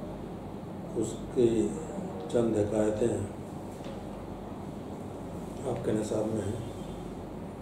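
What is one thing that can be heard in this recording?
An elderly man speaks calmly and slowly into a microphone, in short phrases with pauses.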